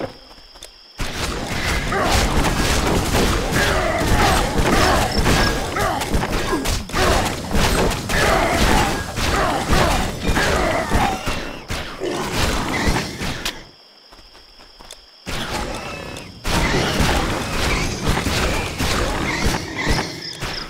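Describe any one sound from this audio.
Weapons clash and thud rapidly in a fierce fight.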